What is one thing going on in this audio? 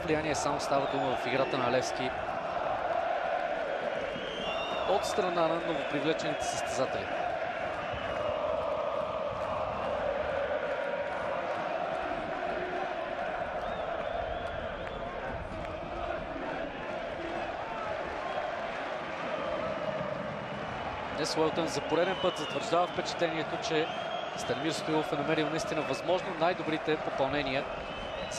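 A large stadium crowd chants and roars steadily.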